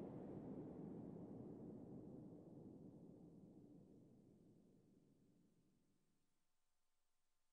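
A spaceship's engines rumble with a deep roar and slowly fade away.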